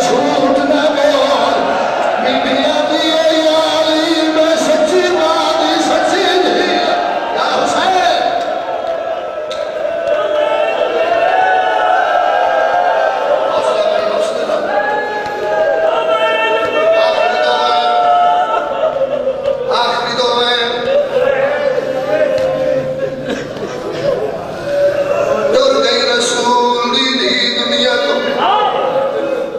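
A man recites passionately into a microphone through a loudspeaker, in a reverberant hall.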